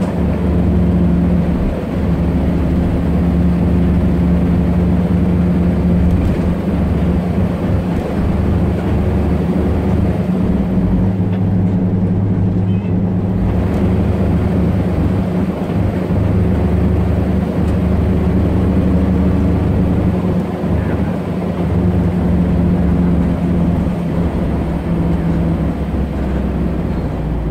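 A bus engine hums low and steady from inside the cabin.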